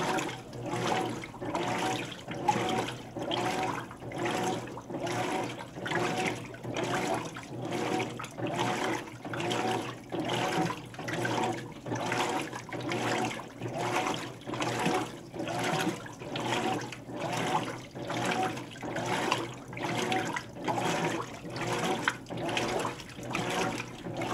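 Water sloshes back and forth in rhythmic surges as a washing machine agitates.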